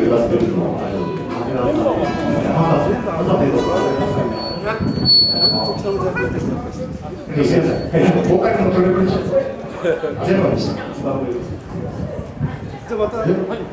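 A man sings into a microphone through loudspeakers.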